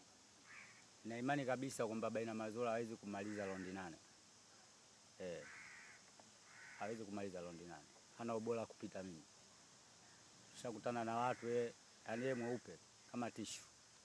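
A young man speaks calmly into a microphone, in pauses.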